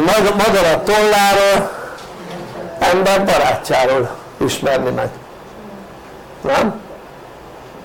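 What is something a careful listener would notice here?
An elderly man speaks calmly and nearby, pausing between phrases.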